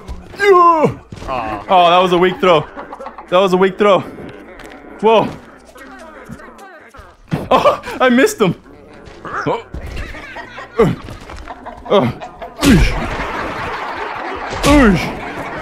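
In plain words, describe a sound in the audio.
A young man talks and exclaims with animation into a microphone.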